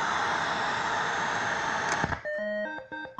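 A toggle switch clicks.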